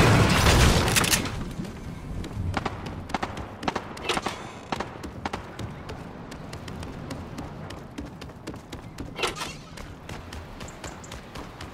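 Footsteps patter quickly across a floor.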